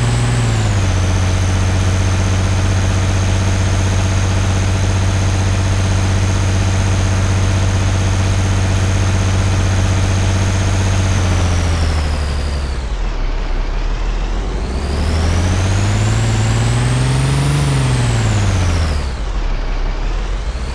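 An armoured car's engine drones as it drives, easing off and then revving up again.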